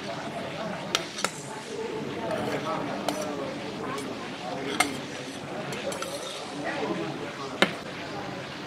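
A metal plate clinks as rice is tipped out of it.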